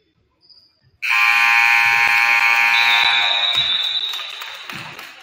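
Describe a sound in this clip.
A game buzzer blares loudly in an echoing gym.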